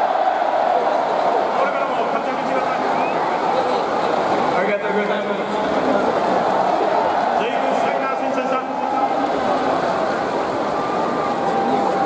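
Men talk calmly nearby.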